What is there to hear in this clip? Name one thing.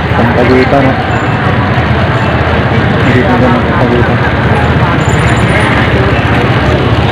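A crowd of people chatters on a busy outdoor street.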